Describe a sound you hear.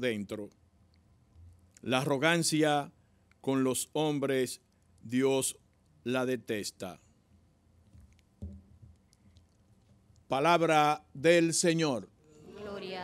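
A man speaks slowly through a microphone in an echoing room.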